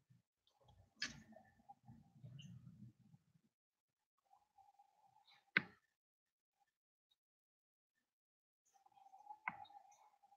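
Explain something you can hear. Small plastic parts click and knock as they are handled.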